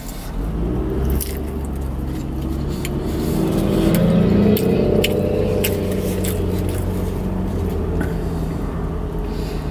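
A man chews food noisily, close by.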